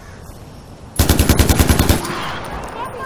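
An assault rifle fires a rapid burst.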